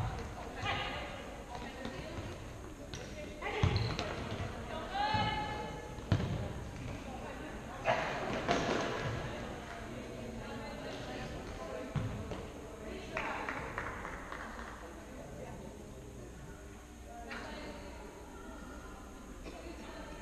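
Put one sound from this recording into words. Players' shoes squeak sharply on a hall floor.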